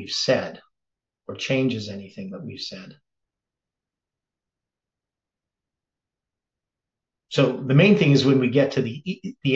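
An elderly man speaks calmly and closely into a microphone, with long pauses.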